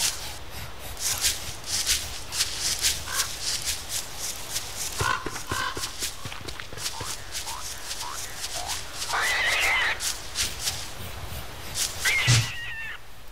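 Quick footsteps patter across dry ground.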